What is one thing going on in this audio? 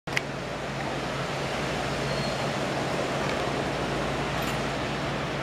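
Waves break and wash steadily onto the shore.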